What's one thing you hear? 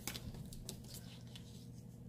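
A sticker peels off its backing paper.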